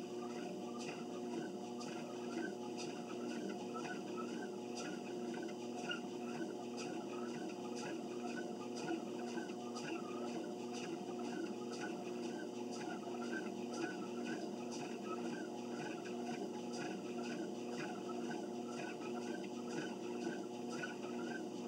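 Footsteps thud in a quick, even rhythm on a treadmill belt.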